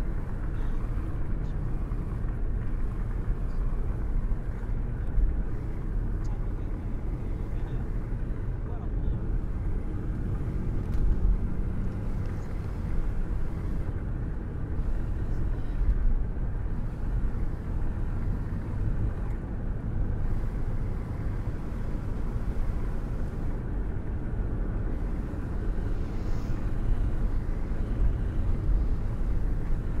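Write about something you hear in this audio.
Tyres roll on asphalt with a low rumble.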